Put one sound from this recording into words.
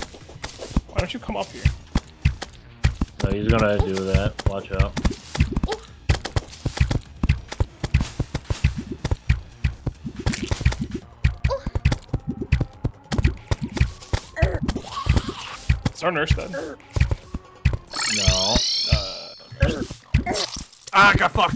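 Game weapons fire and enemies get hit with rapid, sharp clicks and thuds.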